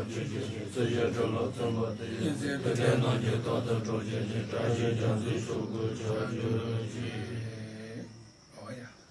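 An elderly man chants in a low, steady voice close by.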